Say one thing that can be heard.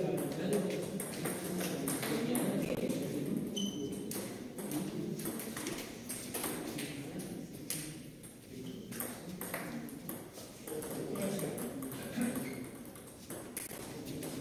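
A table tennis ball clicks back and forth off paddles and tables.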